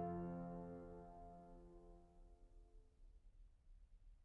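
An organ chord rings out and fades away.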